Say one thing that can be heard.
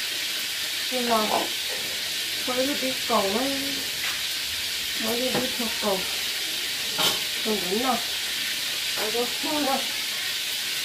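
A middle-aged woman talks calmly nearby.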